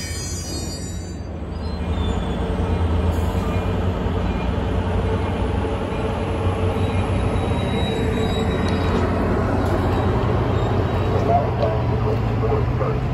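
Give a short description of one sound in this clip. A passenger train rumbles past on the tracks, loud and close.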